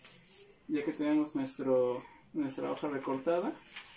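Paper rustles as it is folded.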